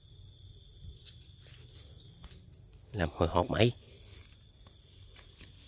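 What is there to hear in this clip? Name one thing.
Leafy branches rustle close by.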